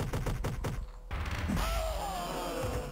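A body explodes with a wet, crunching burst.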